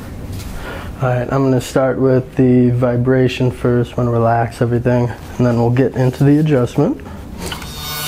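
A man speaks calmly and clearly close by.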